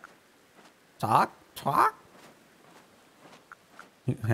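A young woman speaks calmly into a close microphone.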